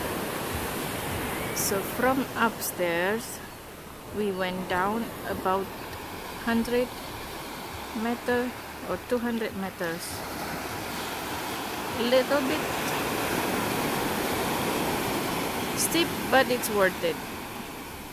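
Waves wash onto a sandy shore.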